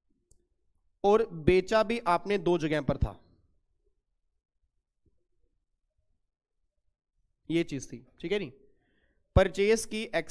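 A man speaks calmly into a microphone, explaining with pauses.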